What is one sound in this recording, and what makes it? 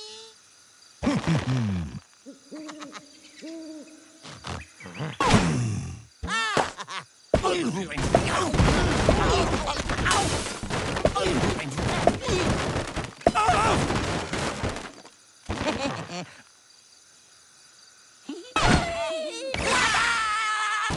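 A slingshot stretches and twangs as a bird is launched.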